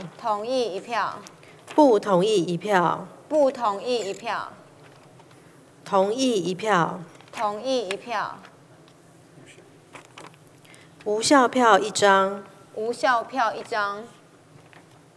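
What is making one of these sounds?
A woman calls out in a loud, drawn-out voice over a loudspeaker in a large hall.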